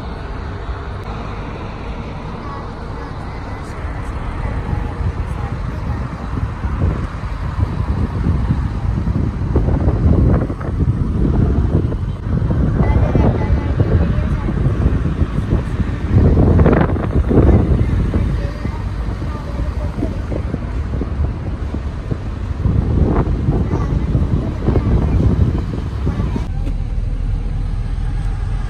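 A car's tyres hum steadily on the road.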